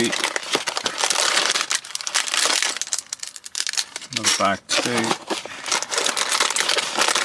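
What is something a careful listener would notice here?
Cardboard box flaps scrape and rustle as they are handled.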